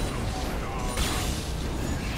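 An explosion booms in a game.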